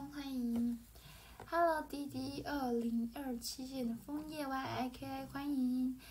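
Paper rustles in a young woman's hands.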